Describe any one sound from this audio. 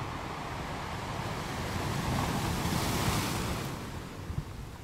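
Ocean waves crash and roar against rocks, swelling and then fading.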